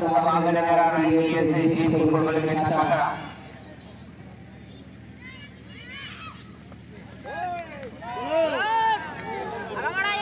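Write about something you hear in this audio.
A crowd of spectators chants and shouts loudly outdoors.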